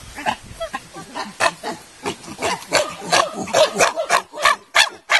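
A chimpanzee pants in rapid bursts.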